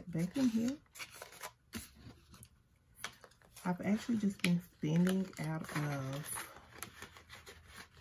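Paper banknotes rustle as they are counted by hand.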